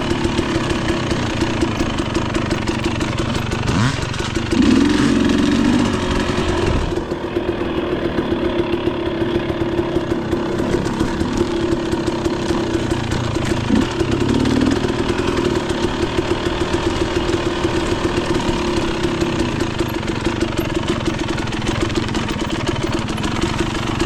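A dirt bike engine revs and putters close by throughout.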